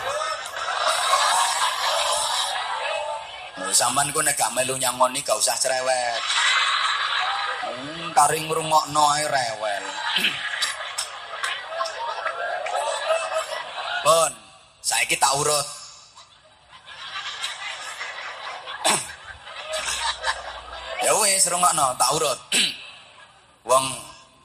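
A man preaches loudly and with animation into a microphone, heard through loudspeakers.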